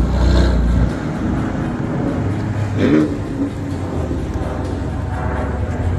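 A sports car engine idles with a deep burble.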